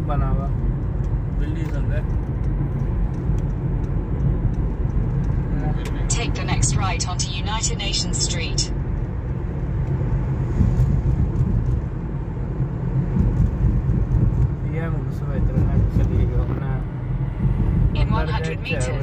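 A car engine hums and tyres roll steadily on a road.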